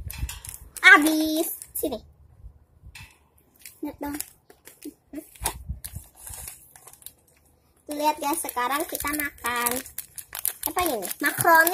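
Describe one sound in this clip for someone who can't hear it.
Young girls talk with animation close by.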